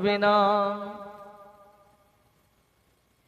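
A young man chants in a long, drawn-out tone through a microphone and loudspeakers, the sound ringing out and slowly fading.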